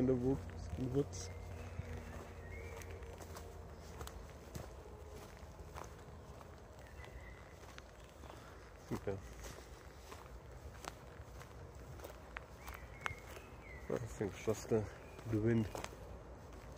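A man speaks close to the microphone in short, calm bursts.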